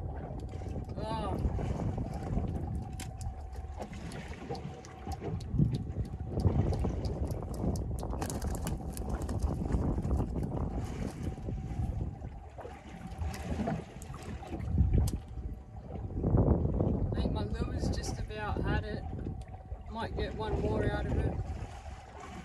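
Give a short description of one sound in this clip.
Wind blows against the microphone outdoors.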